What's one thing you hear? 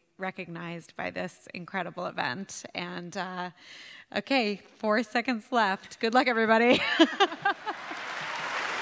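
A young woman speaks into a microphone with emotion, heard through loudspeakers in a large hall.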